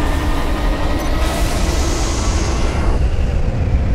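Electric sparks crackle and hiss.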